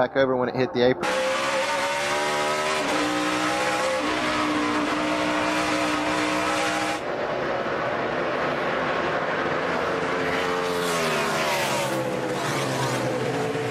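A race car engine roars at high speed, its pitch shifting as it changes gear.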